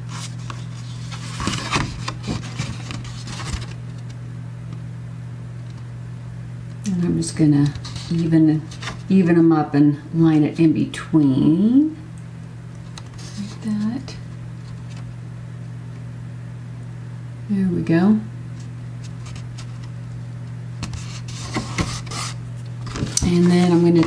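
Cardboard rustles and scrapes as it is folded and handled.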